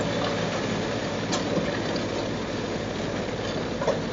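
Branches crack and snap as a wood chipper grinds them up.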